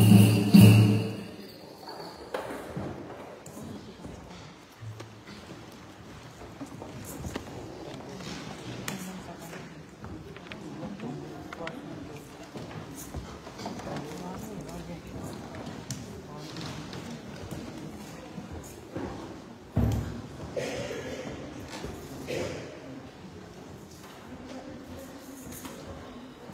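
A group of women sing softly at a distance.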